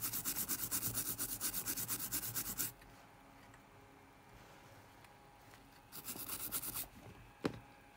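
A cotton swab scrubs rapidly against a circuit board.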